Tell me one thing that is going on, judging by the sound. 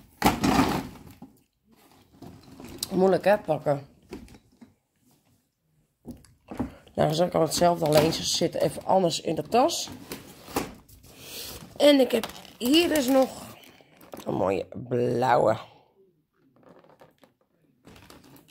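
Plastic packaging crackles as it is handled.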